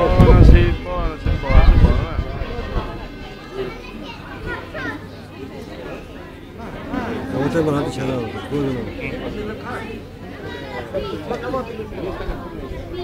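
Men and women in a small crowd talk and murmur close by, outdoors.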